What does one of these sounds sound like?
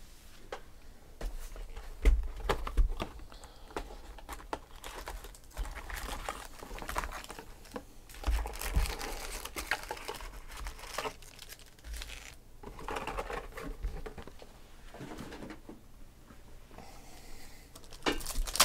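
Card boxes knock and tap on a table.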